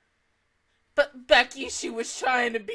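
A young woman laughs and talks with animation close to a microphone.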